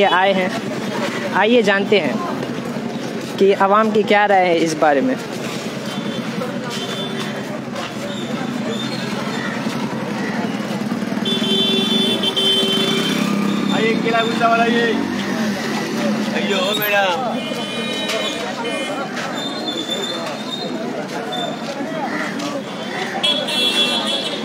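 A busy street crowd murmurs and bustles outdoors.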